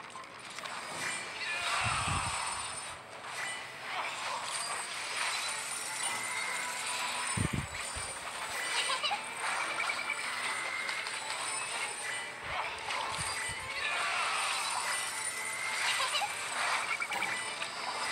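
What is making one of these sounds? Game battle effects whoosh, clash and sparkle rapidly.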